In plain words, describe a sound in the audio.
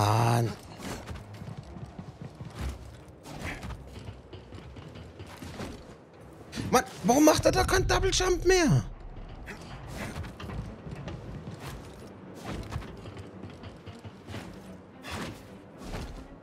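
Hands grab and scrape along a metal wall.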